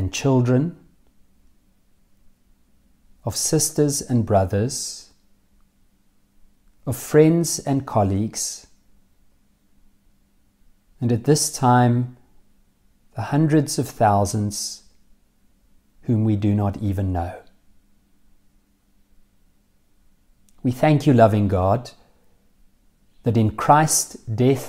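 A middle-aged man reads out calmly and closely into a microphone, in short phrases with pauses.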